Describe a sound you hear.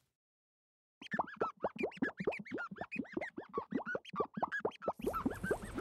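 A soapy sponge squeaks and squelches rapidly.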